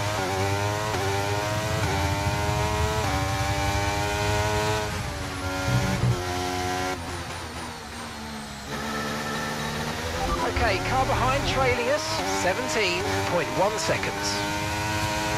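A racing car engine roars at high revs, dropping in pitch with each gear change.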